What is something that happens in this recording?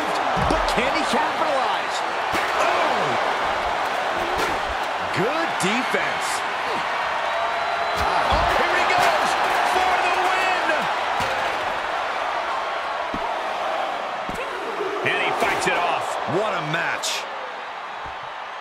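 A large crowd cheers loudly and steadily.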